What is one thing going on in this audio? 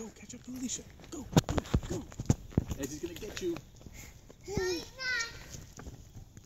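Young children call out in high voices outdoors.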